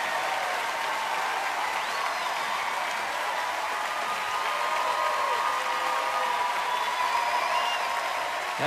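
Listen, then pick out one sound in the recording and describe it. A large crowd cheers and screams loudly throughout.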